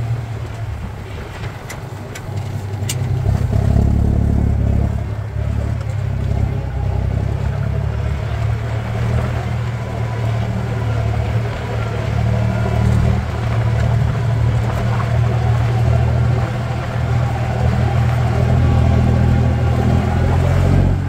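A plough tears through grassy soil.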